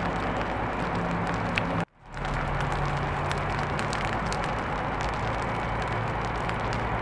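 A fire engine's pump runs with a low drone.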